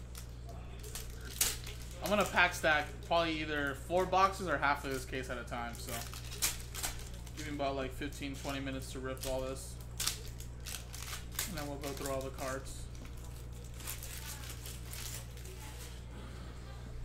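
Foil card wrappers crinkle and tear as they are opened.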